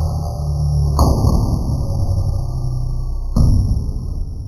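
A cardboard box knocks sharply onto a hard wooden floor.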